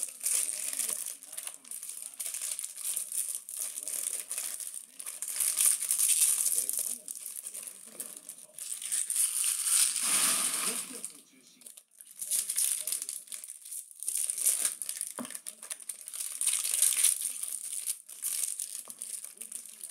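Trading cards shuffle and slap softly against each other.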